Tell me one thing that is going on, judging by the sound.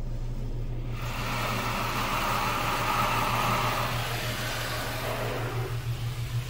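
Water sprays hard against a car's windows and roof, then stops.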